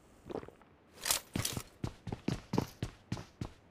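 Quick footsteps thud on hard ground.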